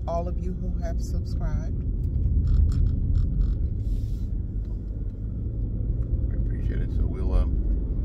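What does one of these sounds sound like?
A car engine rumbles low and steady from inside the car.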